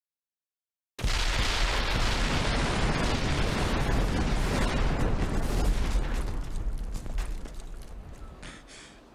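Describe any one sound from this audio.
Flames roar loudly and then slowly fade.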